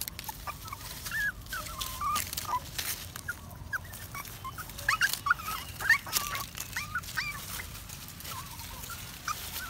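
Puppies whimper and squeak in high, thin cries close by.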